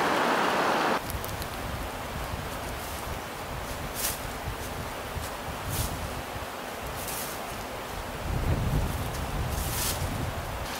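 Footsteps crunch on the forest floor.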